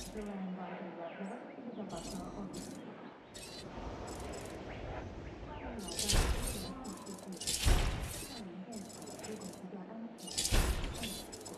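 Soft interface clicks and chimes sound as menu options are picked.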